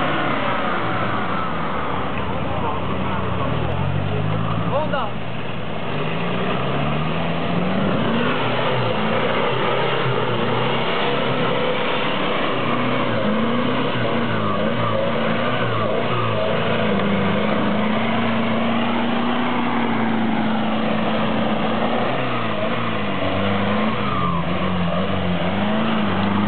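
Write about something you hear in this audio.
Tyres spin and churn in thick mud.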